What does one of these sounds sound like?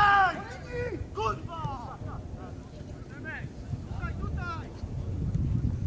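Footballers shout to each other in the distance on an open pitch.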